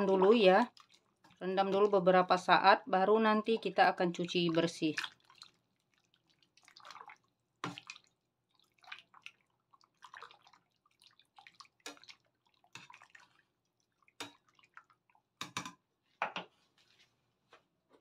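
A utensil clinks and scrapes against a metal pot.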